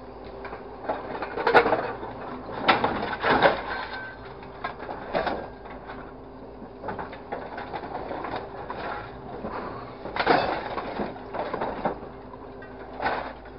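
Scrap metal clanks and rattles in a hydraulic grapple.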